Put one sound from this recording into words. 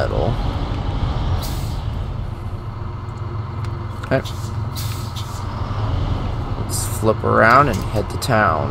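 A heavy diesel truck engine rumbles at low revs.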